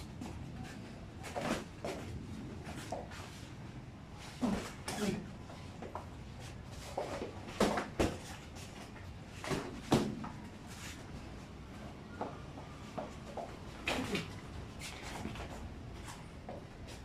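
Feet shuffle and stamp on a padded mat.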